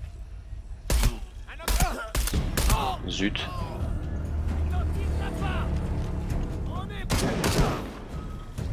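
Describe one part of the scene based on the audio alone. Gunshots crack sharply several times.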